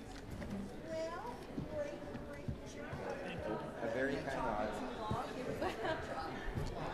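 A crowd of adults chatters in a large room.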